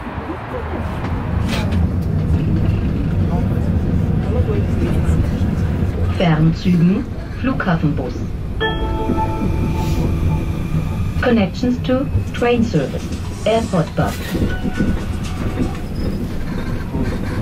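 A tram rumbles along its tracks.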